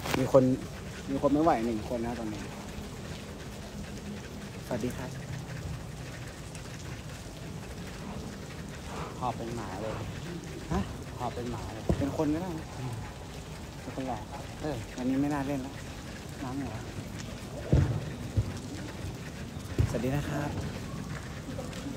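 A young man talks casually close by, in short bursts.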